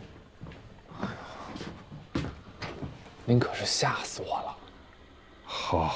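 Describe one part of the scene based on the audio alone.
A young man speaks softly.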